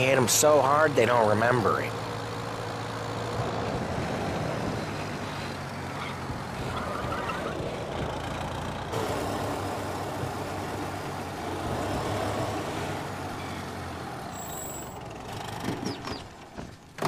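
An old car engine chugs steadily as the car drives along.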